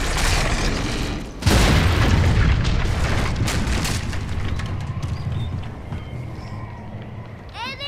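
Strong wind roars and then slowly eases.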